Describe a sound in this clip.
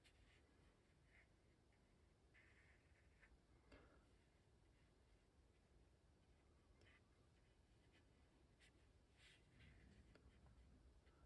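A paintbrush softly scratches and dabs on paper.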